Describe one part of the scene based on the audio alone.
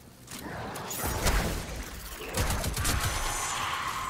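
A rifle fires rapid shots in a video game.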